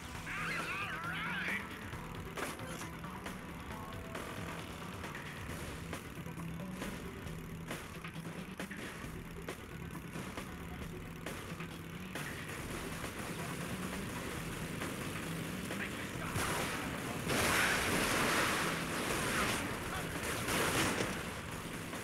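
A motorbike engine drones steadily.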